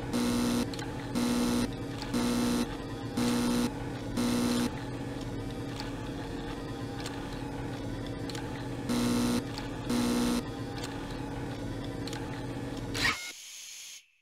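A low electric hum drones steadily.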